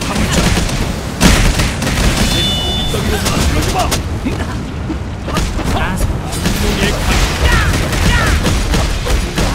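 Sword strikes and magic blasts hit in quick bursts.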